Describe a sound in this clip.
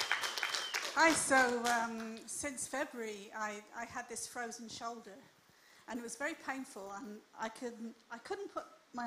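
An elderly woman speaks calmly through a microphone in a large room.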